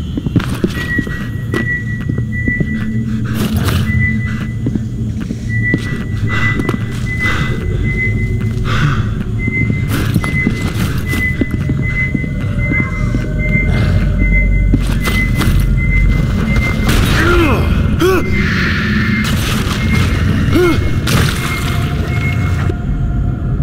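A motion tracker beeps steadily at an even pace.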